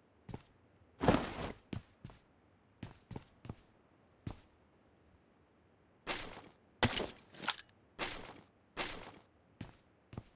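Gear rustles sharply as items are picked up.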